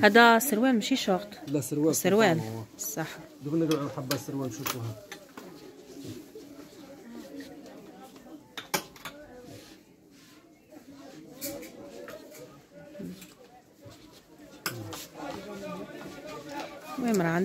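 Clothes hangers clack against a metal rail.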